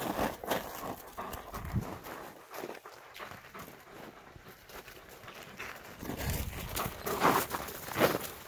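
Dogs growl and snarl as they play-fight close by.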